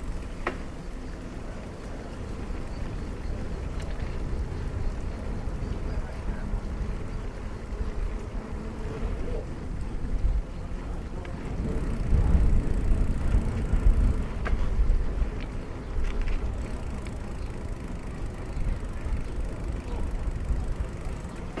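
Wind gusts outdoors, rumbling low and steady.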